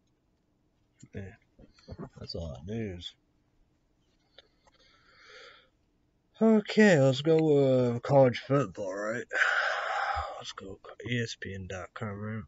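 A young man speaks close to a microphone, calmly at first and then with animation.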